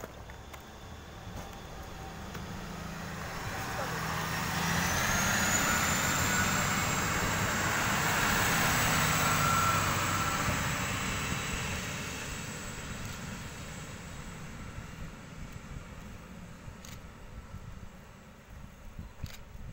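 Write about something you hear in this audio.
A passenger train approaches, rumbles past close by on the tracks and fades into the distance.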